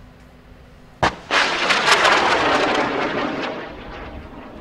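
A missile launches with a sharp bang and a loud roaring rush that slowly fades.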